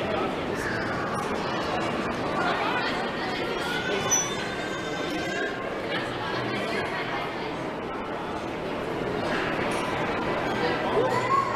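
Young children chatter and call out nearby in an echoing room.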